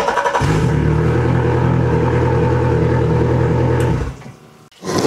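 A boat motor runs with a steady low hum.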